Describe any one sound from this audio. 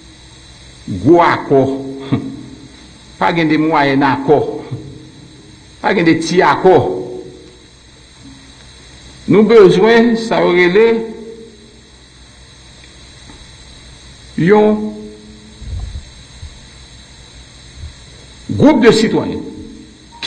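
A middle-aged man speaks into a microphone with animation, in short bursts with pauses.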